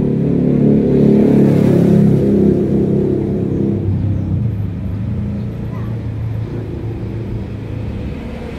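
A scooter engine idles with a low steady hum.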